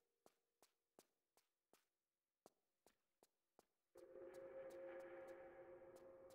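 Footsteps run quickly on a stone floor.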